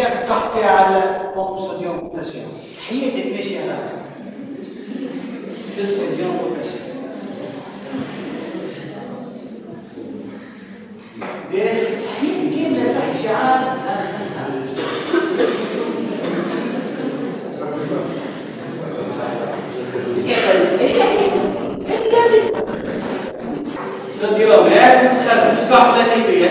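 A man speaks with animation to a room, his voice echoing a little.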